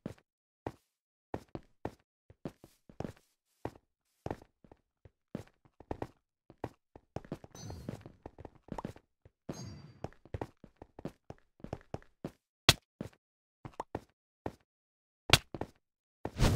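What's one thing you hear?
Game footsteps patter in quick succession.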